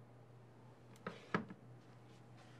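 A shoe knocks down onto a wooden shelf.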